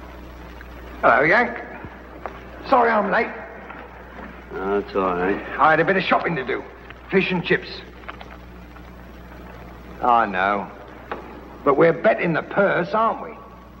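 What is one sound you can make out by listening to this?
A man answers in a low, gruff voice, close by.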